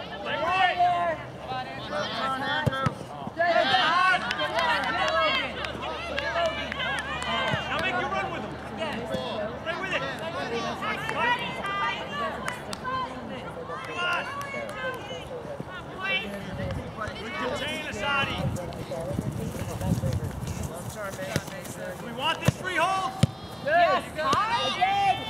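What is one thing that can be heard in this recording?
Spectators shout and cheer loudly outdoors.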